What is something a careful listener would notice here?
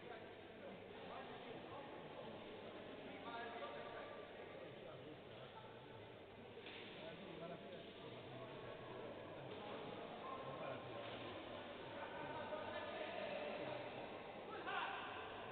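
Several men talk quietly among themselves in a large echoing hall.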